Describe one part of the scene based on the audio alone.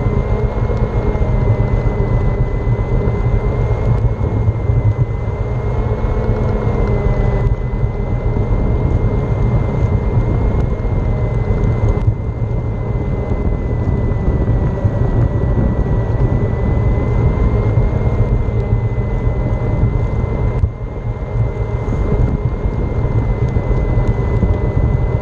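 An electric scooter motor whines steadily as it rides along.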